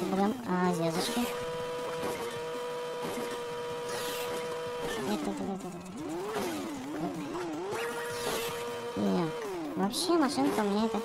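A car engine hums steadily, then revs up and down.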